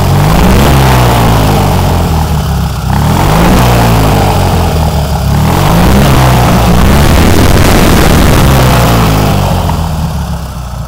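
A small engine revs up and down loudly up close.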